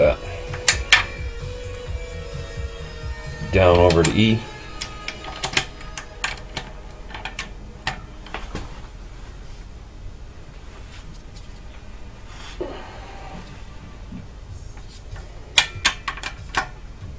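Metal tools clink and knock against an engine.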